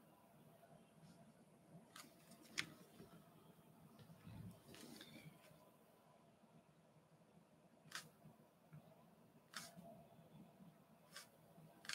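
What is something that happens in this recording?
A small brush dabs and strokes softly on paper.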